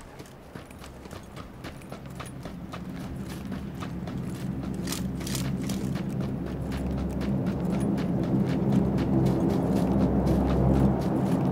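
Quick footsteps run across grass.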